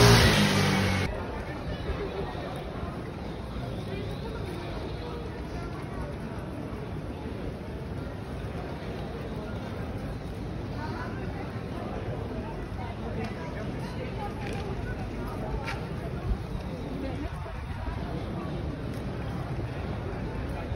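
Many footsteps patter on paving stones.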